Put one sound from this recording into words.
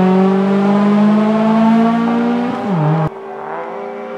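A racing car engine roars loudly and fades into the distance.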